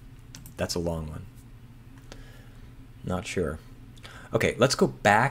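A man speaks thoughtfully into a close microphone, pausing between phrases.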